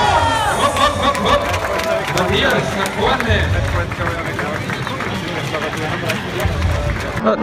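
A large crowd of people chatters and calls out outdoors.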